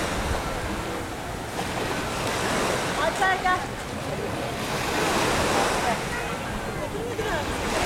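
Small waves lap and wash steadily on the shore.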